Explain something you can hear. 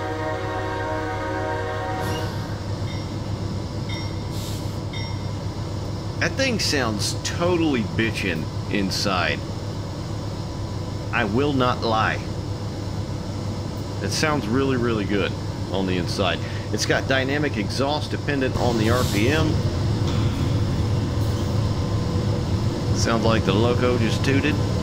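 Train wheels roll and clatter over rail joints.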